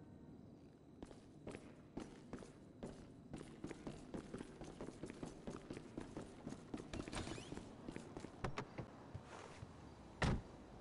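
Footsteps thud on stairs and a hard floor.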